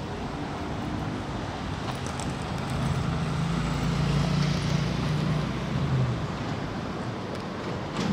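Skateboard wheels roll and rumble on pavement.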